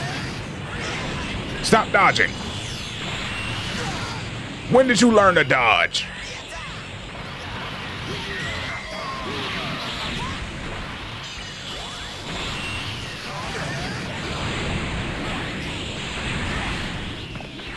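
Explosions boom and rumble.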